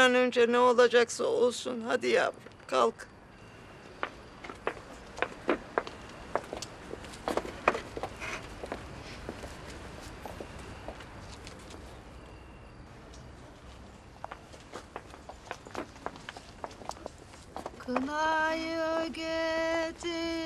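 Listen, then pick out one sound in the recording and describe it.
Women sing together.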